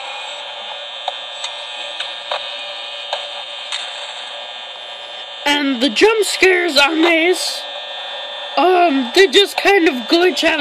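A steady electronic hum plays from a small tablet speaker.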